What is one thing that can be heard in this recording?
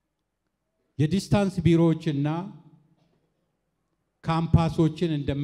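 A man speaks with animation into a microphone, heard over loudspeakers.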